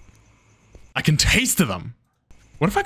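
A man laughs loudly close to a microphone.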